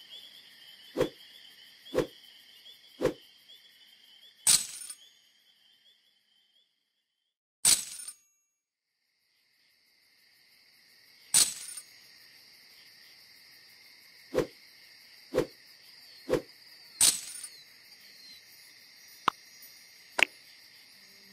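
Short electronic pops and chimes sound as game tiles flip over.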